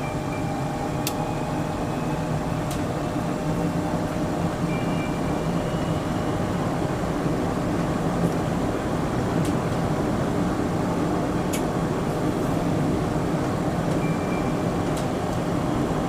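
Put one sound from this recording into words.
Train wheels click sharply on rail joints now and then.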